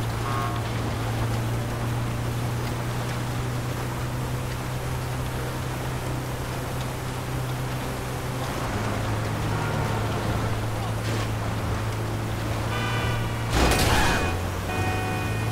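A van engine hums steadily as it drives along.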